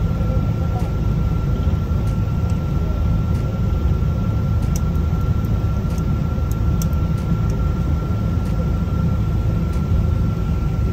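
Jet engines roar steadily as an airliner taxis.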